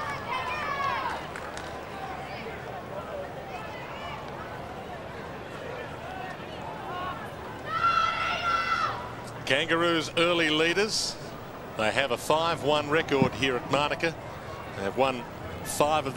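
A crowd cheers loudly in a large open stadium.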